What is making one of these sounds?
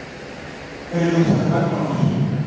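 An elderly man speaks into a microphone over loudspeakers.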